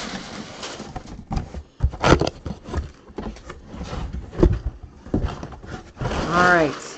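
A cardboard box bumps and scrapes as it is handled close by.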